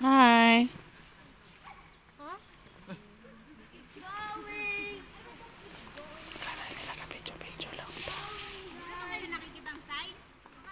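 Several people brush through tall grass and leaves at a distance.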